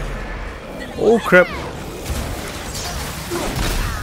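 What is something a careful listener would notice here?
An axe strikes a creature with a heavy impact.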